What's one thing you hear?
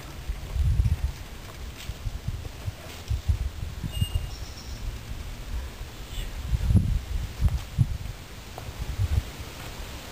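A mountain bike's tyres crunch over a dirt trail as a rider passes close by.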